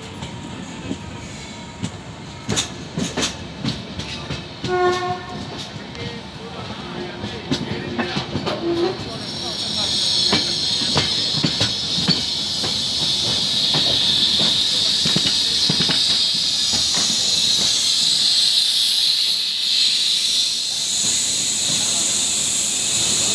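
A train rumbles and clatters steadily over the rails.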